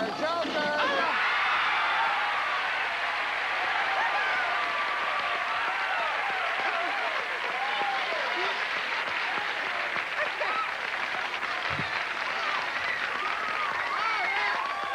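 A studio audience cheers and screams with excitement.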